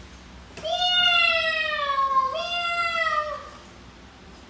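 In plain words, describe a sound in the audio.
A woman calls out loudly in a long, sing-song voice.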